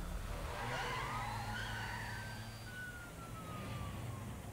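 A police siren wails briefly.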